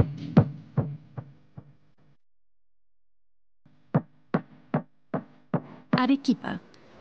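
A music track with a steady beat plays.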